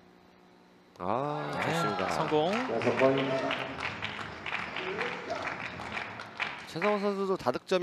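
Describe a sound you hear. A small group of people applauds.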